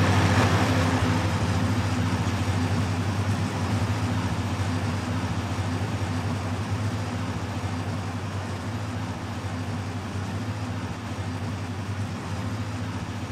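A heavy truck engine rumbles steadily as the truck drives along.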